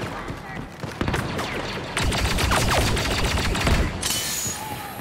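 Blaster rifles fire rapid laser shots that zip past.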